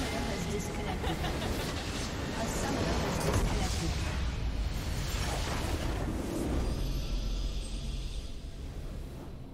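Game battle effects clash and crackle loudly.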